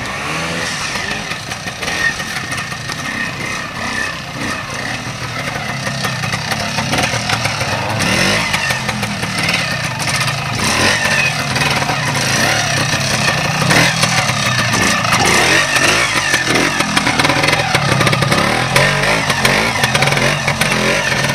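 A motorcycle engine putters and revs unevenly, growing louder as it comes close.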